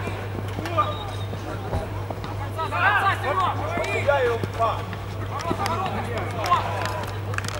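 Men shout and call out to each other across an outdoor field.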